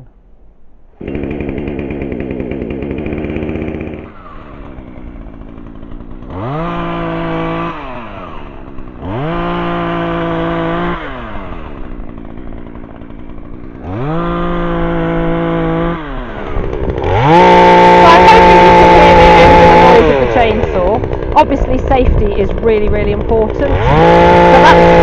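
A chainsaw engine starts and runs close by.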